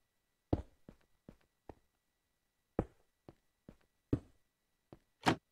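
Wooden trapdoors are placed with short, dull knocks.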